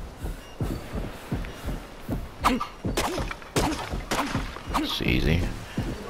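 A stone hatchet chops at a tree with dull thuds.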